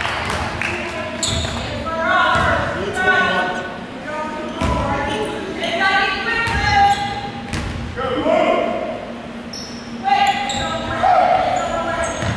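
Teenagers chatter loudly nearby in a large echoing hall.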